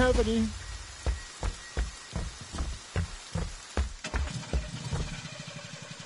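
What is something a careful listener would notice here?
Heavy footsteps thud at an even pace on a hard floor.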